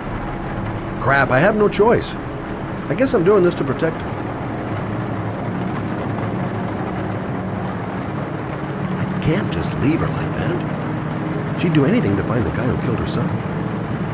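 A middle-aged man speaks quietly and sadly, close by.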